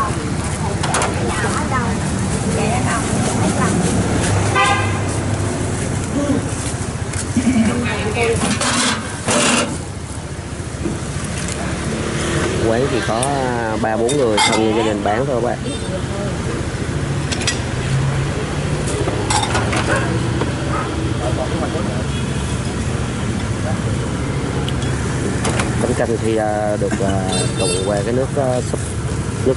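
Metal utensils and ceramic bowls clink and clatter close by.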